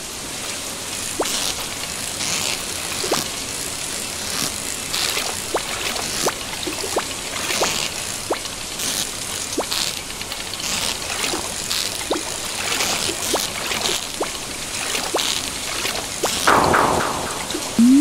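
A fishing reel clicks and whirs in bursts as a fish is reeled in.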